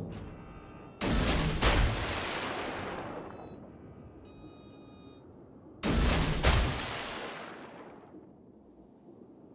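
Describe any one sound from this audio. Heavy naval guns fire loud booming salvos that rumble away.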